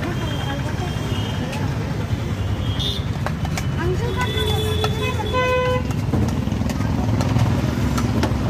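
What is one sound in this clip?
A ladle scoops and scrapes in a metal pot.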